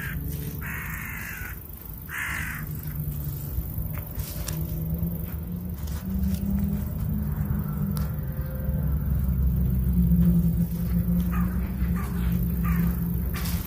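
A small hand hoe scrapes and scratches through dry soil.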